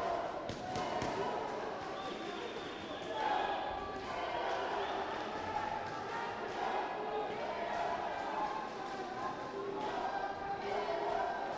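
Boxing gloves thud against a body in quick punches.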